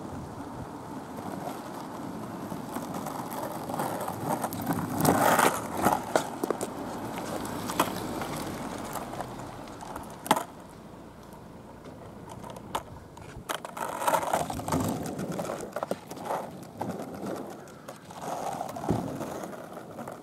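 Skateboard wheels roll on rough asphalt.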